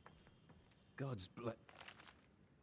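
A book is opened with a soft thump.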